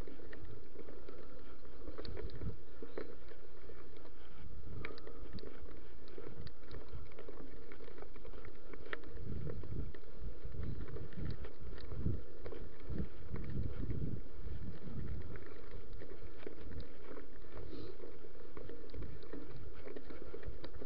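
A bicycle's frame and parts clatter over bumps.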